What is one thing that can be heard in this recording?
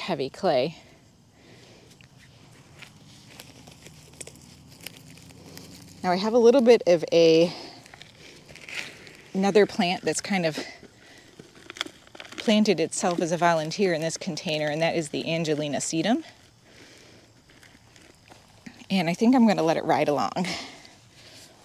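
A woman talks calmly and clearly, close by.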